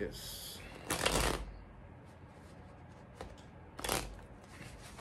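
Playing cards riffle and flutter as they are shuffled close by.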